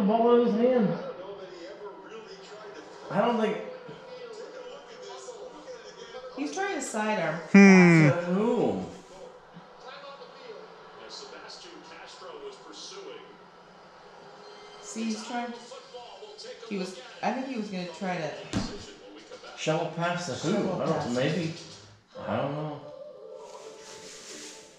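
A television plays a broadcast in the room.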